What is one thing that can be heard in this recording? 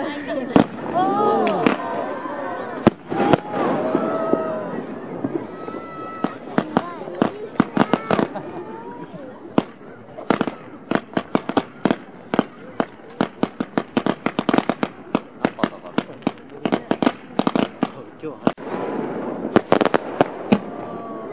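Fireworks crackle and bang outdoors, one after another.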